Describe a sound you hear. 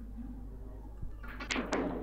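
A cue tip strikes a snooker ball with a sharp click.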